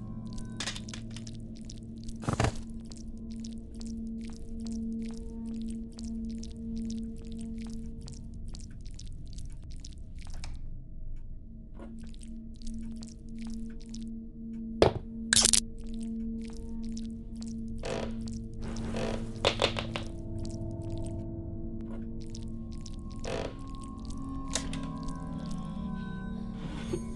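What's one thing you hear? Footsteps thud steadily on creaking wooden floorboards.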